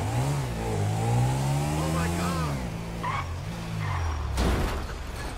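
A motorcycle engine revs as the motorcycle accelerates.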